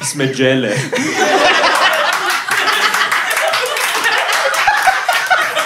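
An audience laughs and cheers in a room.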